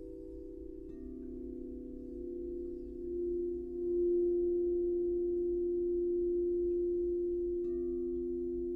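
A mallet strikes a singing bowl, starting a new tone.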